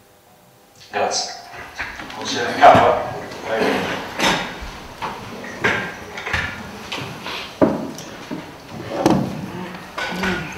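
Chairs scrape and clatter as a group of people sit down.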